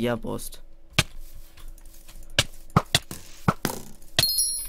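A sword strikes an opponent with short, sharp hits.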